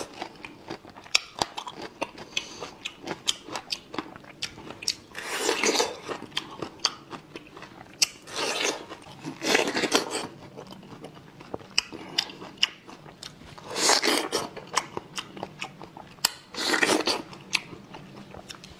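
A man chews and slurps wetly, close to a microphone.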